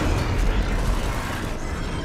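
Gunfire rattles in rapid bursts nearby.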